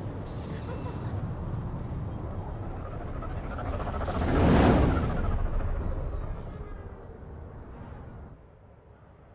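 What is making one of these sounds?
A spacecraft roars loudly as it flies past, then fades away.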